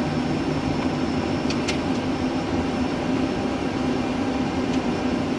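A low, steady hum of aircraft systems and fans fills a cockpit.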